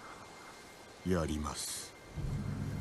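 A young man answers quietly and calmly.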